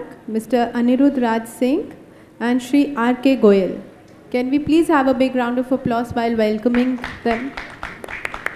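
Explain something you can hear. A woman speaks clearly through a microphone in an echoing hall.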